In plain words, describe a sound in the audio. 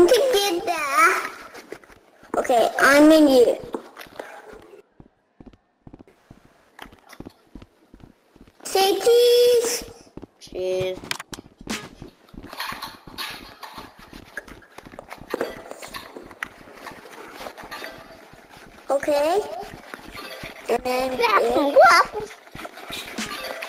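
A child talks excitedly over an online voice chat.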